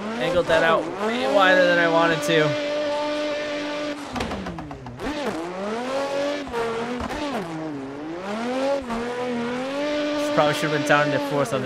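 A car engine revs loudly, its pitch rising and falling.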